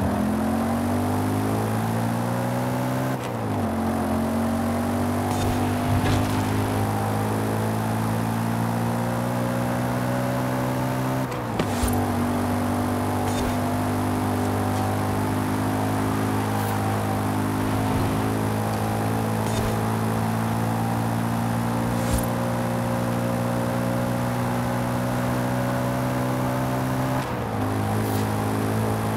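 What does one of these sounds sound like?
A car engine roars at high revs, climbing in pitch and dropping briefly at each gear change.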